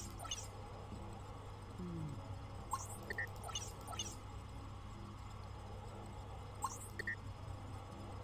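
Short electronic chimes and blips sound as buttons are pressed.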